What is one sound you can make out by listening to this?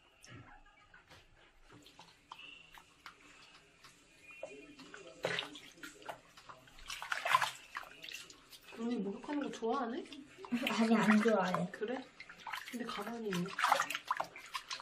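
Water splashes and sloshes softly as hands wash a small animal.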